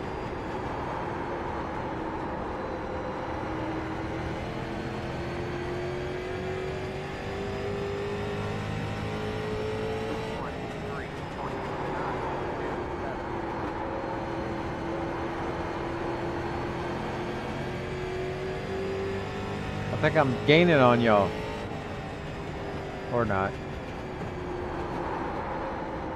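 A race car engine drones steadily, its pitch rising and falling with speed.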